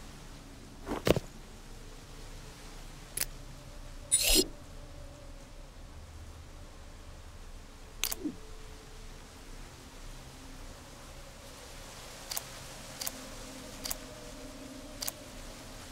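Short clicking chimes sound now and then.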